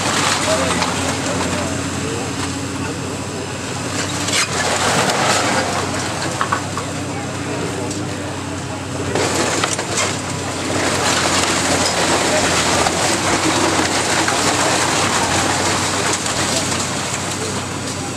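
A demolition excavator engine rumbles steadily.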